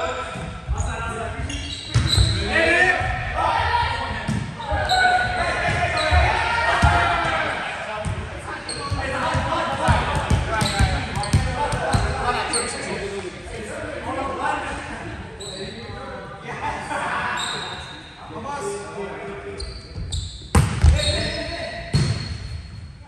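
A volleyball thuds off players' hands and arms, again and again.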